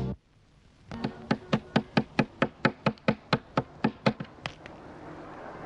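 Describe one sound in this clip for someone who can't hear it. Footsteps tap steadily down wooden stairs.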